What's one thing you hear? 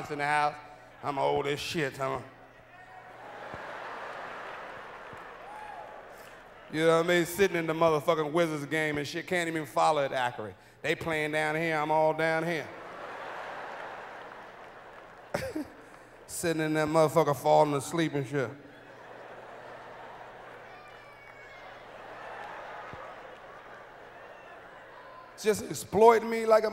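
A man talks with animation into a microphone, heard over loudspeakers in a large hall.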